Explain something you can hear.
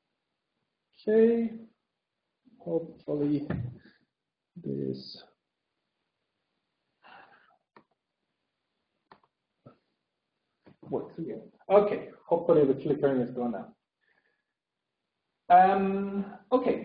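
A man speaks in short phrases with pauses, lecturing.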